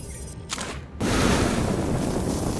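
Blaster shots fire rapidly.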